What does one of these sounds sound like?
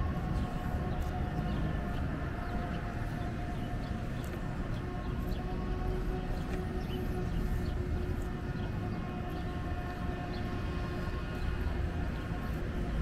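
Cars drive past on a nearby street with a steady rumble.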